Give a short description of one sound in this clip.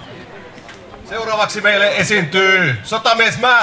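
A man sings into a microphone over the band.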